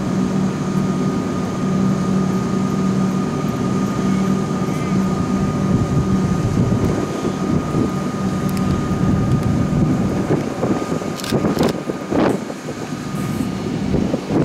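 An electric train hums steadily nearby.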